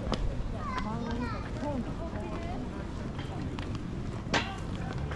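Footsteps tap on stone paving.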